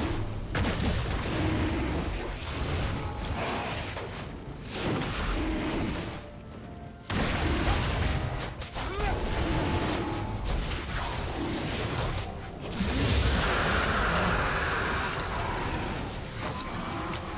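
Game sound effects of spell blasts and hits ring out in quick bursts.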